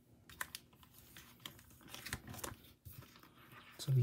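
Binder pages flip and rustle.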